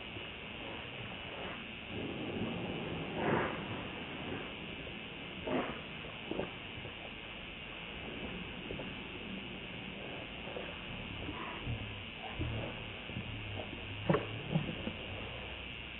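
A baby monkey suckles with soft wet smacking sounds.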